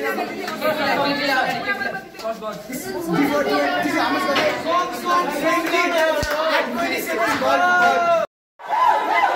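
A group of teenagers sings together.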